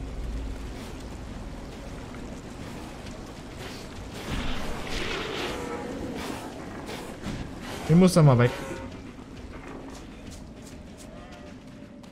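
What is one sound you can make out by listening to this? Footsteps run over rocky ground.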